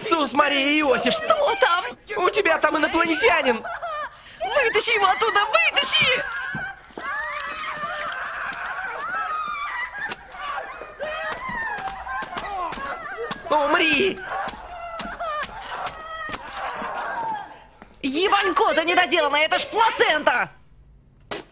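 A young man shouts in anguish close by.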